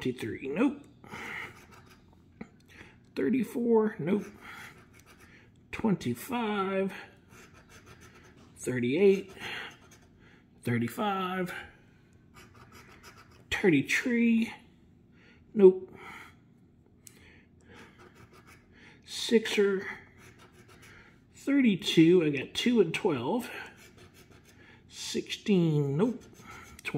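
A coin scratches across a card with a dry, rasping sound.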